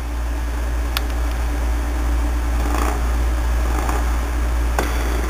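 Fingers tap lightly on a small device.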